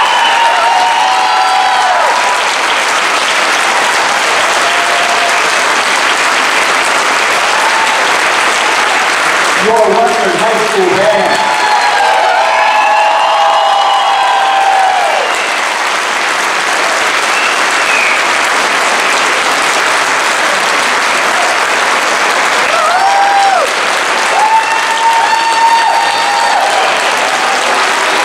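A large concert band plays loudly in an echoing hall.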